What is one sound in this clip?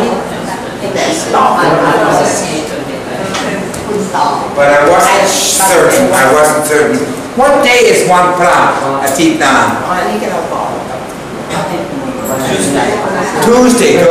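An elderly man speaks with animation, close by, explaining in a teaching voice.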